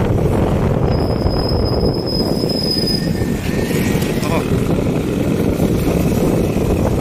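Motorcycles pass by on a road.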